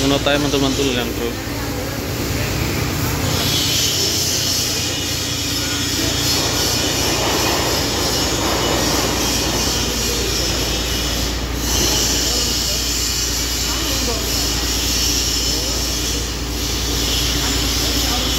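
Metal scaffolding rattles as men push and shake it.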